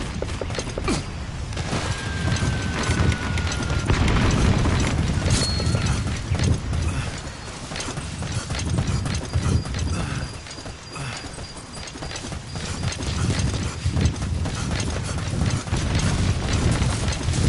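Footsteps thud quickly over rough ground.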